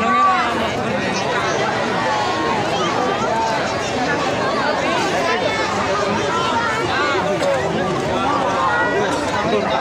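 A large crowd of people talks and shouts outdoors.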